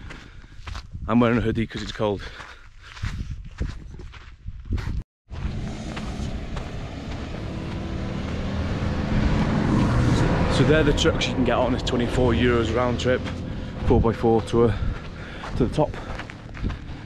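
A young man talks with animation close to the microphone.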